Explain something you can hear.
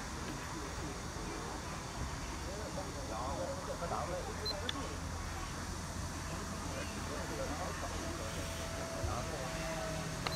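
Wooden game pieces click onto a board.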